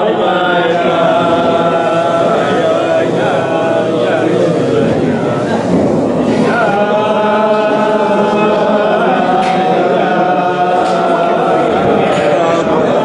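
An elderly man sings a slow, drawn-out melody close by.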